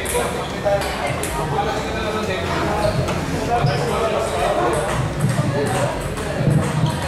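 Ping-pong balls click on tables and paddles.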